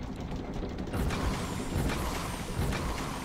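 A magical shimmer whooshes and sparkles.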